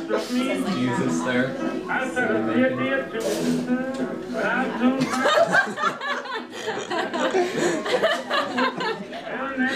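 A young man speaks close by in a comically distorted, squeezed voice.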